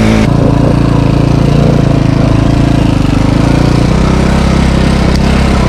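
A dirt bike engine buzzes loudly close by, revving up and down.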